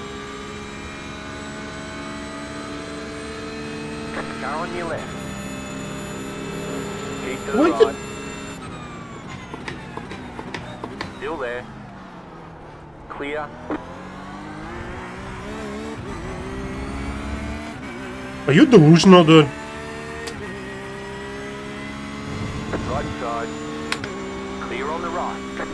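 A racing car engine roars steadily, rising through the gears and dropping in pitch while slowing for corners.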